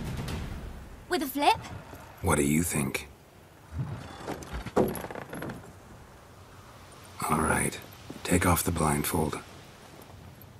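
A young woman speaks calmly and close by.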